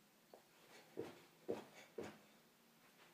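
Feet thud on the floor as a young boy does jumping jacks.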